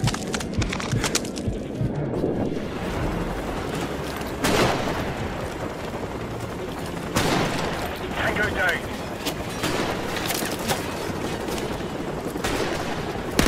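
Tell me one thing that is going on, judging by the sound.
Footsteps crunch on gravel and dry leaves.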